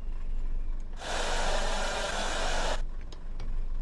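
Compressed air hisses loudly from a brake valve.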